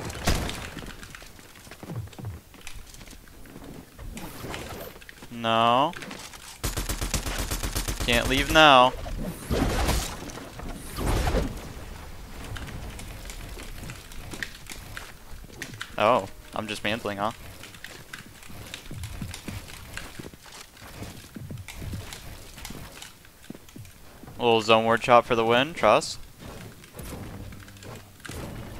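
Wooden and stone walls thud and clack as they are built in quick succession.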